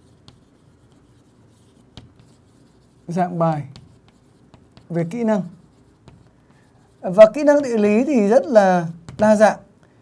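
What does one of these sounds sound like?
Chalk scratches and taps on a board.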